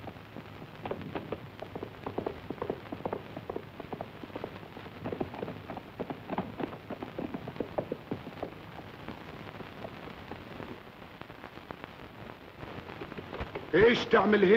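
Horses' hooves gallop over dry ground.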